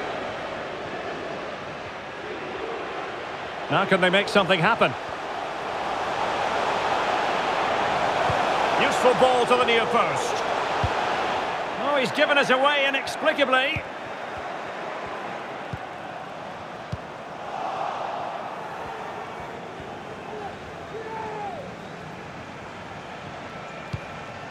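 A stadium crowd roars steadily, swelling and fading.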